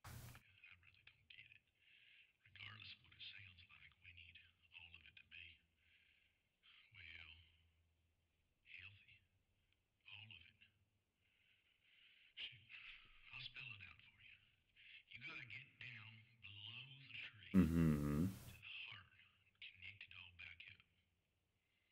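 A middle-aged man speaks calmly and earnestly, heard through a thin-sounding loudspeaker.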